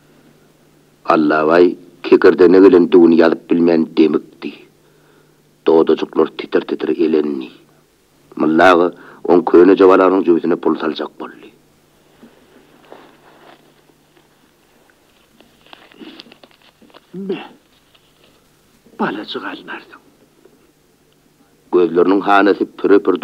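An elderly man sings.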